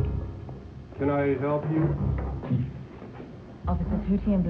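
A woman speaks up nearby with surprise.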